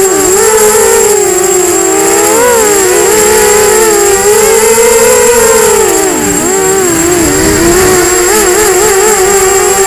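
Small drone motors whine loudly and close, their pitch rising and falling constantly.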